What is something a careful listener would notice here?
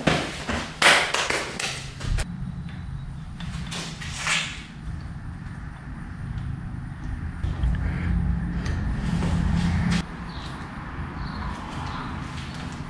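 A brake lever clicks and rattles as it is adjusted.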